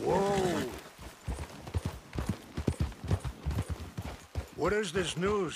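Horses' hooves clop on a dirt trail.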